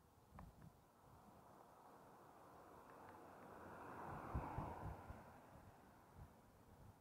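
A car drives past nearby and fades away.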